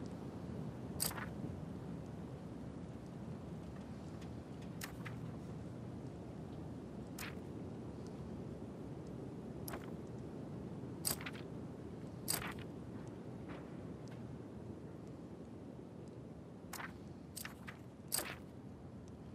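Short menu clicks sound now and then as options are changed.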